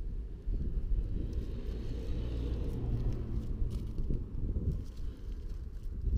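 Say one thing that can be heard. Wind buffets the microphone outdoors with a low, steady rumble.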